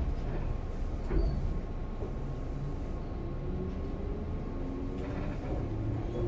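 A train rumbles along the tracks close by.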